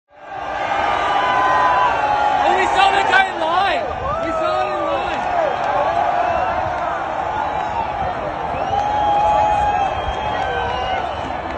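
A large crowd cheers and roars loudly outdoors.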